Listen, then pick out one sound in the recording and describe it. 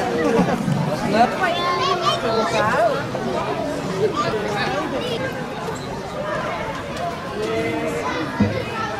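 A crowd of adults and children chatters outdoors.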